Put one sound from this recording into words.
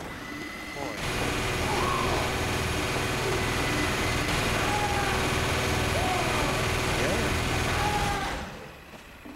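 A heavy rotary gun fires a rapid, roaring stream of shots.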